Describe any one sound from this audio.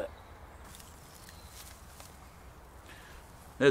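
A net rustles against reeds.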